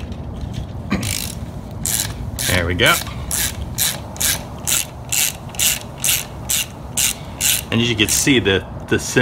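A ratchet wrench clicks rapidly as a bolt is turned.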